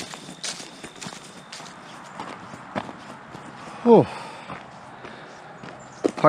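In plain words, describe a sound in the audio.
Footsteps crunch on a gravel trail.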